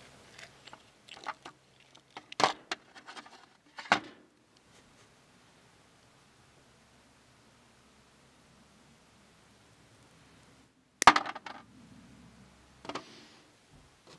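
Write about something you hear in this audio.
Small metal pieces clink and rattle in a metal tray.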